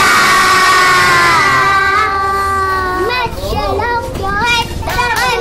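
A group of young children sing together loudly and close by.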